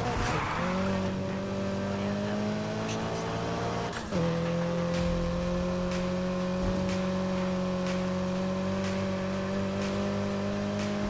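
A car engine roars at high revs, shifting gear once.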